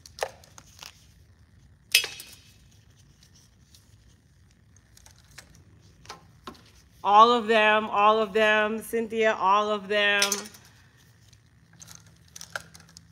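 Plastic clicks and crinkles in gloved hands.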